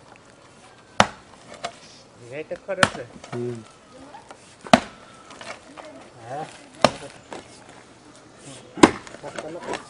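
A hoe strikes hard, dry earth in regular, heavy thuds.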